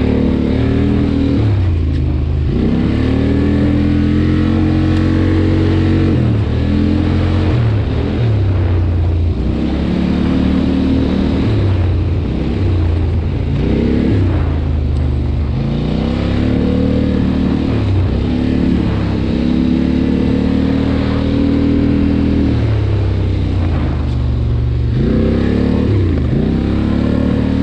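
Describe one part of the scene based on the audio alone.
A quad bike engine revs up and down close by.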